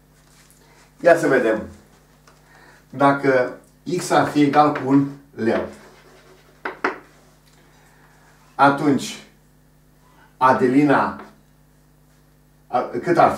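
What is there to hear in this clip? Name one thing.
An older man speaks calmly and slowly, close by.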